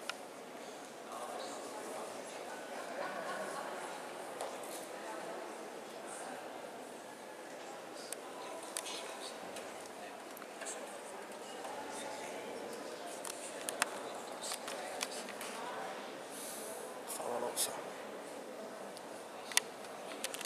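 Many people murmur and talk quietly in a large echoing hall.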